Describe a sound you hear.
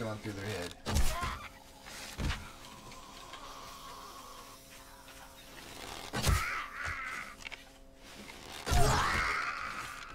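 Heavy blows thud against a body.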